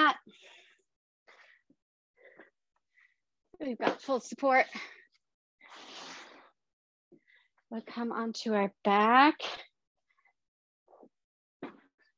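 An exercise mat flaps and rustles as a woman spreads it out.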